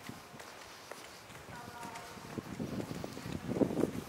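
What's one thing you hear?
Footsteps of a passerby tap on the pavement nearby.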